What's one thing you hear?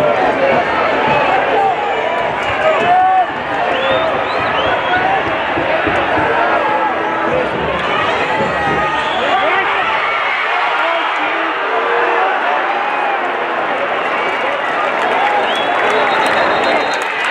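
A large stadium crowd chants and cheers loudly throughout.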